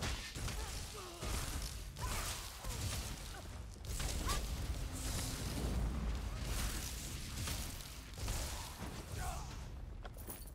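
Weapons strike with heavy, clanging blows.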